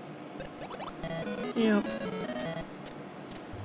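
A short electronic jingle plays as a letter is revealed.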